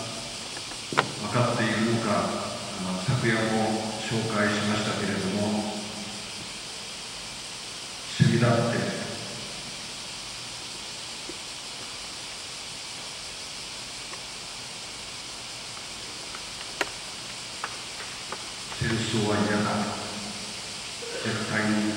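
An elderly man speaks calmly through a microphone in a large echoing hall, pausing between phrases.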